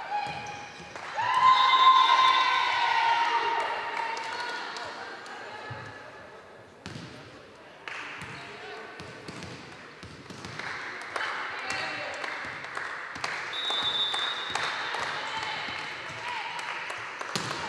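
Young women players shout and cheer loudly.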